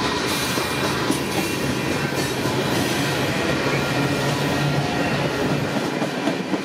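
A freight train rumbles past close by, wheels clacking and squealing on the rails.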